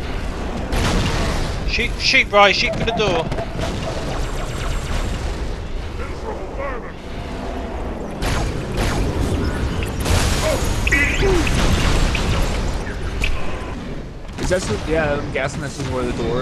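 Plasma blasts explode with a fizzing crackle.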